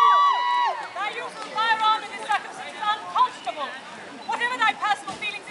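A woman speaks loudly, projecting to an audience outdoors.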